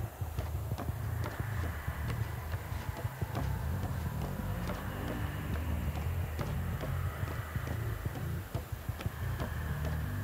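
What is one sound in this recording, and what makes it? Heavy footsteps thud on wooden boards.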